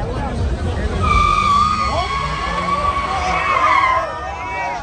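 Tyres squeal on the road.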